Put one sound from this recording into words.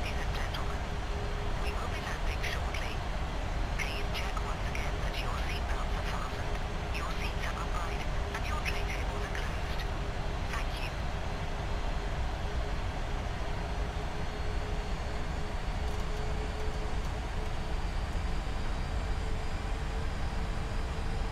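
Wind rushes steadily against a cockpit's windows.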